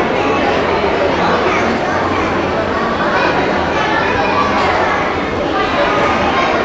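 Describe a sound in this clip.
Many children chatter and call out at once in a large echoing hall.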